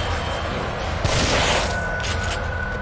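A heavy blow thuds.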